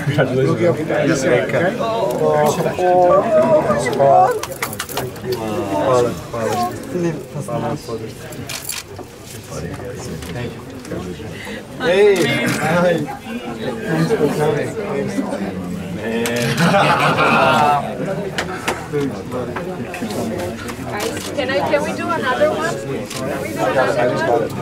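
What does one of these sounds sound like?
A crowd of people chatter loudly all around.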